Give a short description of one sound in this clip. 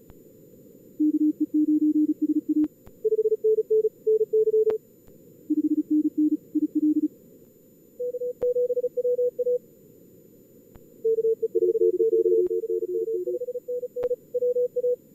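Morse code beeps in quick bursts, switching between a lower and a higher tone.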